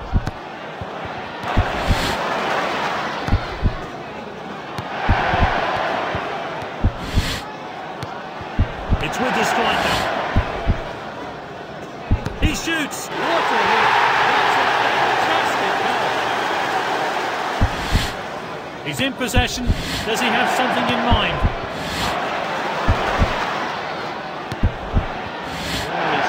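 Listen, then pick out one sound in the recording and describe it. A stadium crowd murmurs and swells into loud cheering.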